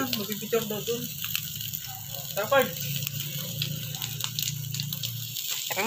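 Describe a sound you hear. Meat sizzles and crackles on a hot grill.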